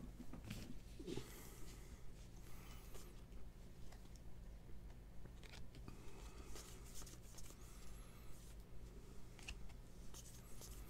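Trading cards rustle and slide against each other as they are shuffled by hand.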